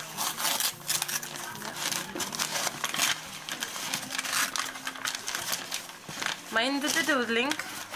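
Paper crinkles and rustles as a parcel is unwrapped.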